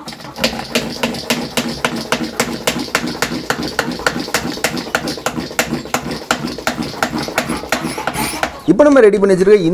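A hand pump on a plastic sprayer squeaks and clicks in quick, steady strokes.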